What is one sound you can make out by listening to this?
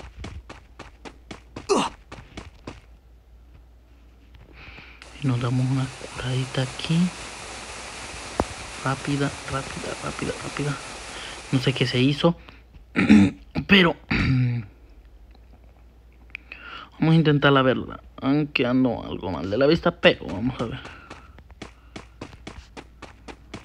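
Quick footsteps thud on the ground.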